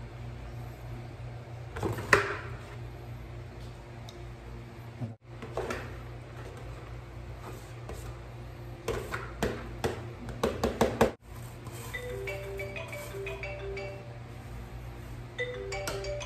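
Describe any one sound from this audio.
A metal spoon scrapes against a pot.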